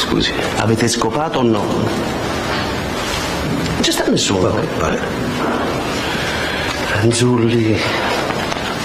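A middle-aged man speaks tensely, heard through a loudspeaker.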